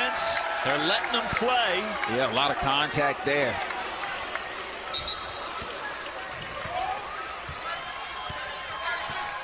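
A large indoor crowd murmurs in an echoing arena.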